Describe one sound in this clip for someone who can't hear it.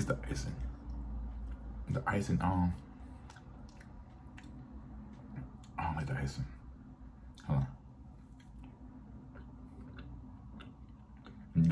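A man chews food with soft smacking sounds.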